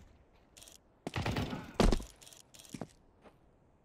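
A rifle bolt clacks and clicks as it is worked.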